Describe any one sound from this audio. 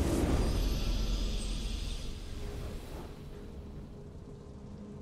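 A triumphant game fanfare bursts out loudly and fades away.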